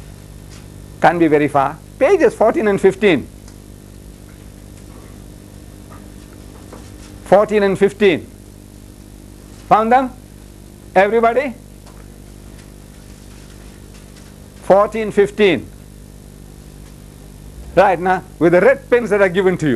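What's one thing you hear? An elderly man speaks in short bursts with pauses.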